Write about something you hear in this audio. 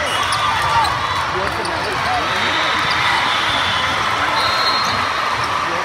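A large crowd chatters and cheers, echoing through a big hall.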